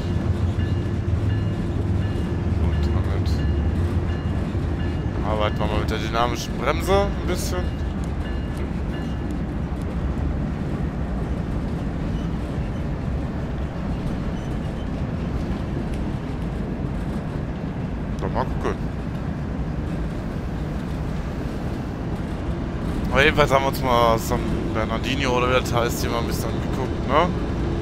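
Train wheels roll over rails.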